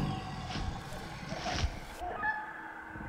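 A large creature growls with a deep snarl.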